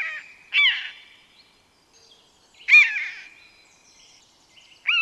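A buzzard gives loud, high mewing calls that slide down in pitch and echo a little.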